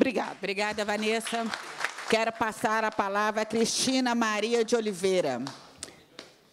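A woman speaks into a microphone in a raised, emphatic voice.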